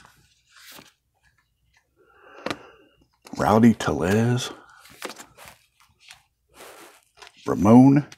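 Plastic sleeves crinkle as cards are slid into them.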